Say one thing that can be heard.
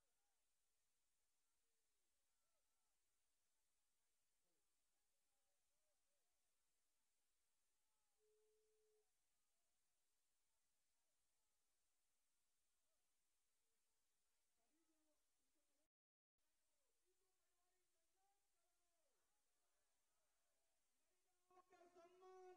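Several people talk quietly in an outdoor crowd.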